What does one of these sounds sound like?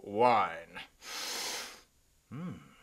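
A man sniffs deeply.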